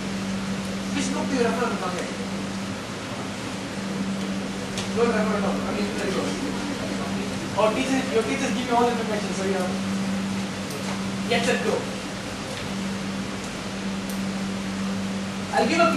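A man speaks to an audience in a large room, with pauses between phrases.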